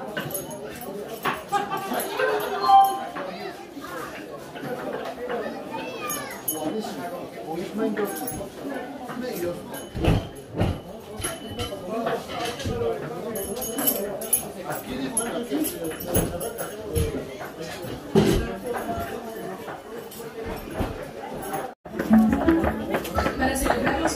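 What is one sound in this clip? A crowd of people chatters around the recorder.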